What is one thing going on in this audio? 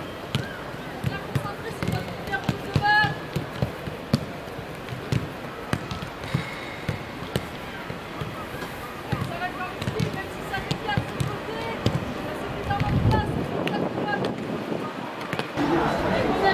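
Footballs thud as they are kicked on grass.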